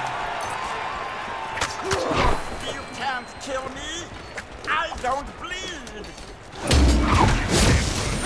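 Magic blasts and explosions burst out in quick succession.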